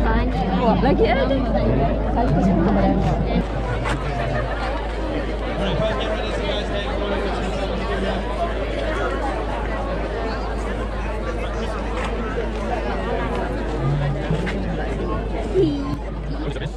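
A large outdoor crowd of men and women chatters loudly all around.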